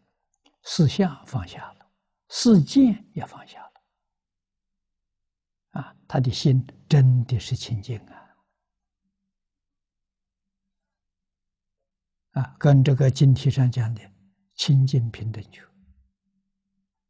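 An elderly man lectures calmly through a close microphone, with pauses.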